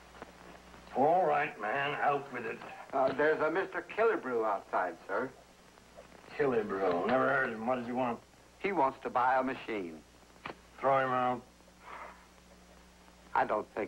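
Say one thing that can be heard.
An elderly man speaks calmly and steadily, close by.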